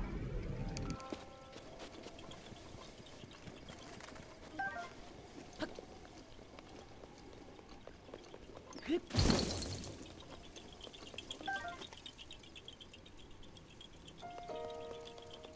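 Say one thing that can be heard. Short chiming tones from a video game ring out now and then.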